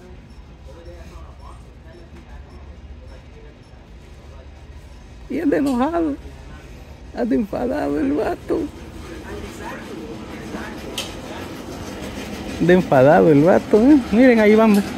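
A shopping cart rolls with a low, steady rattle.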